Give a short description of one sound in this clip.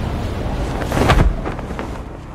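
A parachute snaps open.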